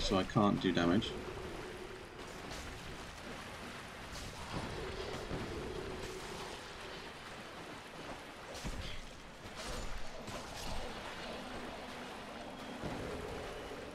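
A magical spell shimmers and whooshes.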